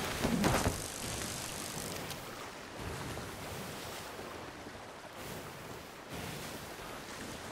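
Wind blows hard over open water.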